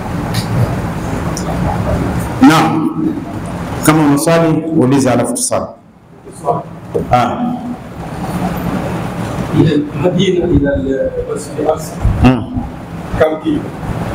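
An elderly man speaks slowly and calmly into a close microphone.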